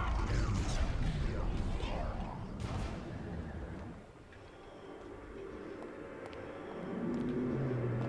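A giant creature's legs thump heavily on a stone floor.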